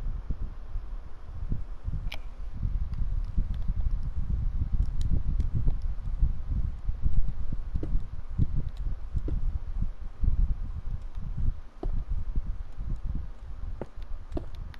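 Stone blocks are set down with soft, short knocks.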